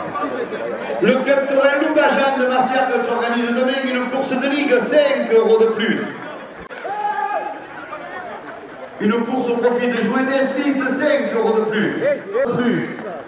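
Spectators cheer loudly.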